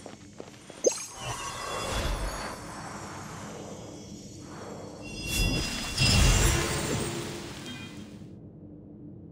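A shimmering magical chime swells and fades.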